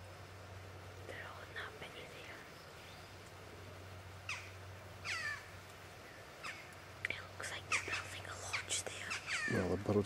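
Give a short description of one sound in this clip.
A beaver rustles through grass at the water's edge.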